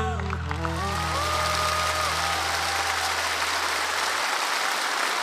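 A band plays loudly through loudspeakers and finishes on a held chord.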